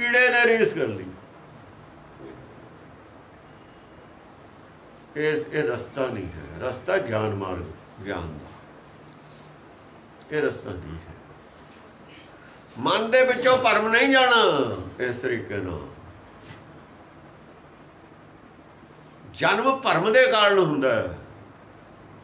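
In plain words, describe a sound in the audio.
An elderly man speaks calmly and slowly, in bursts with long pauses, close to the microphone.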